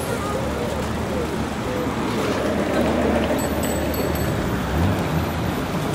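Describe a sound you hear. An electric scooter rolls past on pavement.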